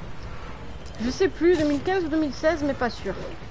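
A young woman speaks casually into a close microphone.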